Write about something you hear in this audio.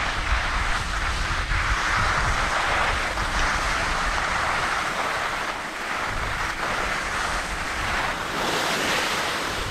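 Wind rumbles and buffets close by.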